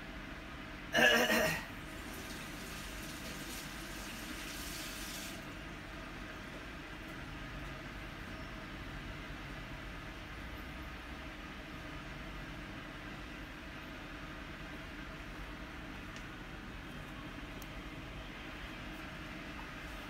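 Water bubbles softly and steadily.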